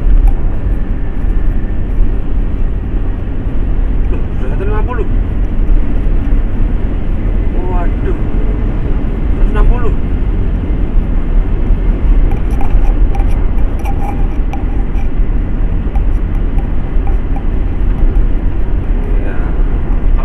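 A car engine hums steadily with a low road rumble from inside the cabin.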